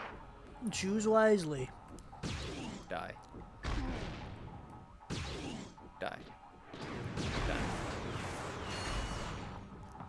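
A heavy weapon fires loud blasts.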